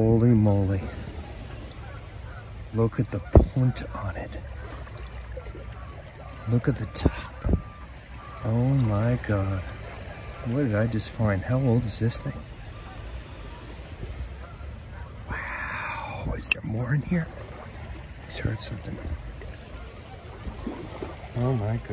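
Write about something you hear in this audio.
Water sloshes inside a glass bottle as it is turned over.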